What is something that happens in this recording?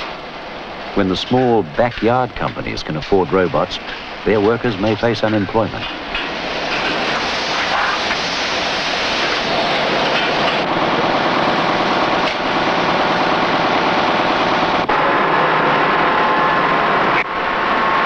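Industrial machinery runs with a steady whirring rumble.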